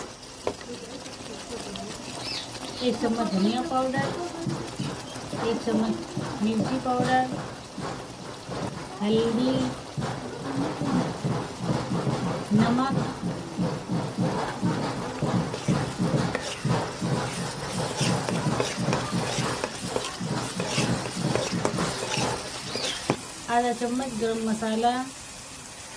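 A spoon scrapes against a pan while stirring.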